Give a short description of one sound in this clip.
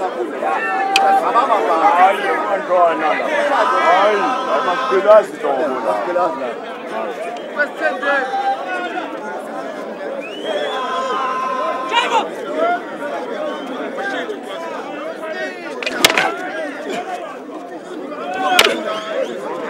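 Wooden sticks clack sharply against each other and against hide shields.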